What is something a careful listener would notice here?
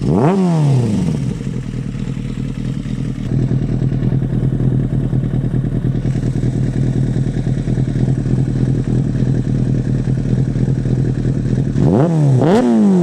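A motorcycle engine idles with a steady, throaty rumble.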